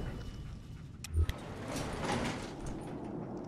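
Metal elevator doors slide open with a clunk.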